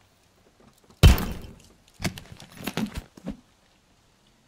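A plastic case clicks open.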